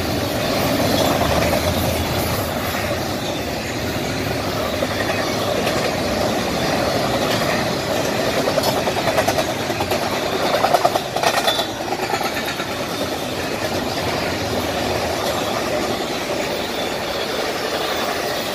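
A long intermodal freight train rolls past close by, its steel wheels rumbling and clattering on the rails.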